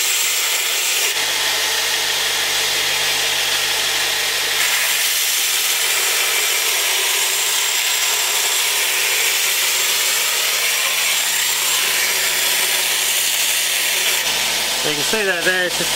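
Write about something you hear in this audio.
A belt grinder grinds metal with a steady, harsh hiss.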